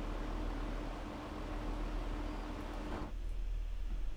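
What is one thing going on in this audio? A train rumbles steadily as it approaches.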